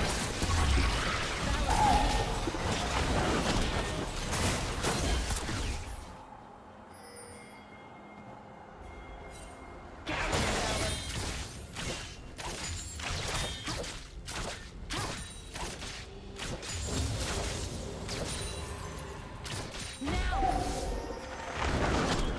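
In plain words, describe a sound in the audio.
Magic spells crackle and burst in a fast fight.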